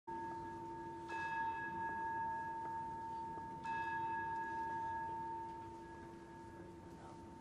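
An organ plays long, held chords that echo through a large hall.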